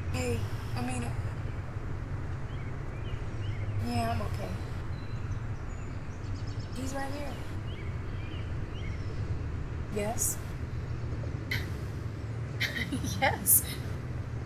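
A young woman speaks quietly into a phone, in short halting bursts.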